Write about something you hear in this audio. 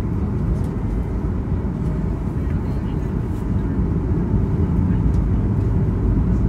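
A jet plane's engines roar steadily, heard from inside the cabin.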